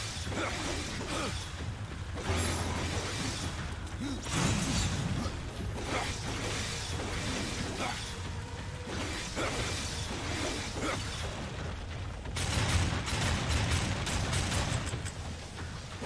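Blades clash and slash quickly.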